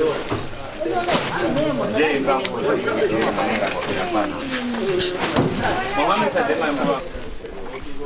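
A young man raps with animation, close by.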